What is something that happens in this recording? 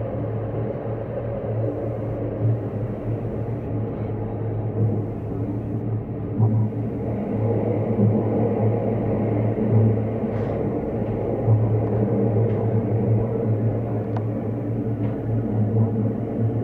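A train rumbles and hums steadily as it runs.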